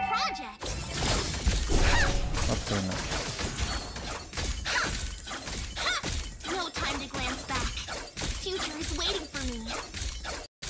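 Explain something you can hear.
Game sound effects of attacks and spells burst and clash rapidly.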